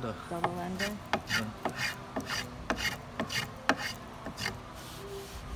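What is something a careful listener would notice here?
A hand brushes across a wooden board.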